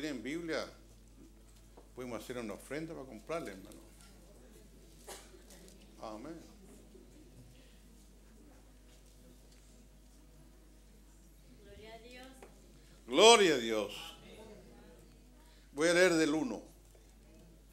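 An elderly man speaks slowly and deliberately through a microphone, with long pauses.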